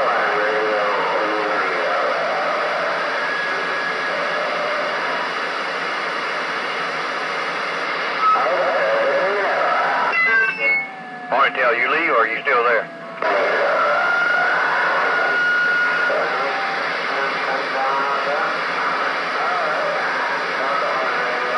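A radio hisses with static and warbling tones.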